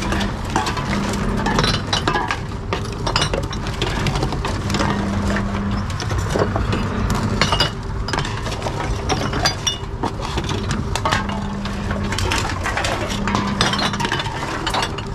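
A machine whirs in short bursts as it takes in containers.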